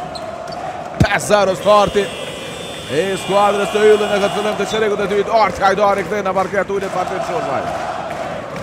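A large crowd cheers loudly in an echoing hall.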